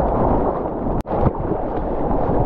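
Water splashes over the microphone.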